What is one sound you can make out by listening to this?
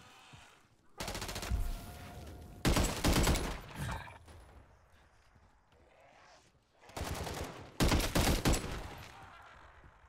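A rifle fires loud bursts of rapid shots.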